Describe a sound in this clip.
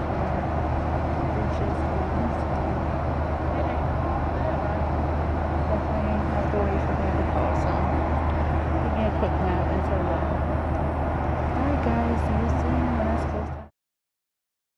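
Airplane engines drone steadily from inside the cabin, then cut off.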